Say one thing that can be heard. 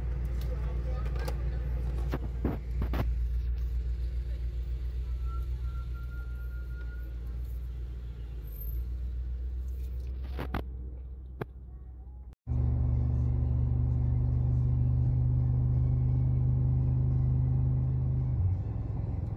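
A car engine hums low and steady, heard from inside the car.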